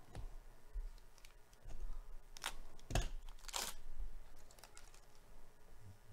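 Plastic and paper rustle as cards are handled.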